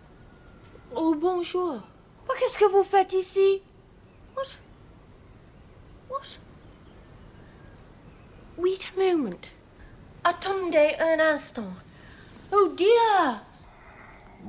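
A young woman speaks with urgency, close by.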